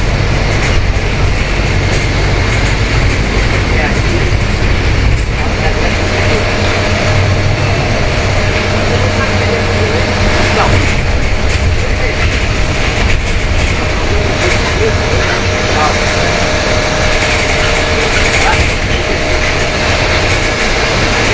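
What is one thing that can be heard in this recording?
A bus rattles and clatters as it rolls along.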